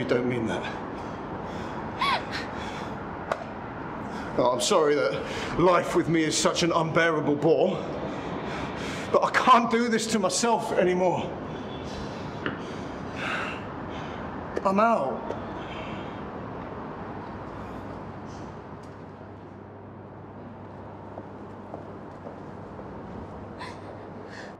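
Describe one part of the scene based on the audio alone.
A young woman sobs.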